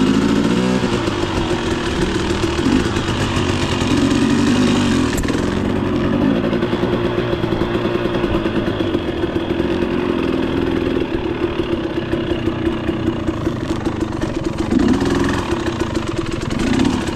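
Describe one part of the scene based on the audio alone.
A dirt bike engine drones and revs steadily up close.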